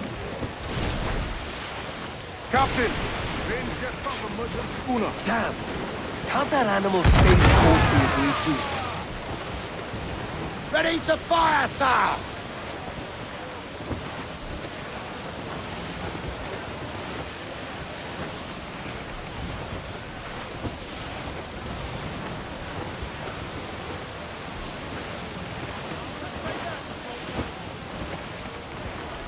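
Rough sea waves crash and wash steadily.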